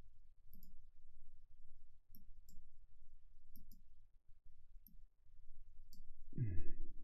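An older man speaks softly and haltingly into a microphone, close by.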